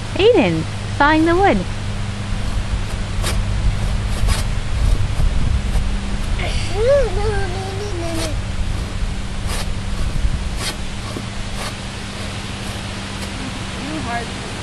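A young child talks in high, excited bursts nearby.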